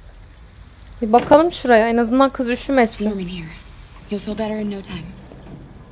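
A woman speaks calmly and softly.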